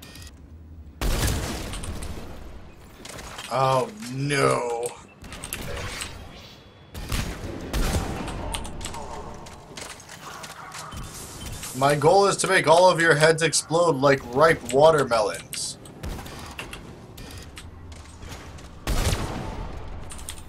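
Gunshots crack from a video game.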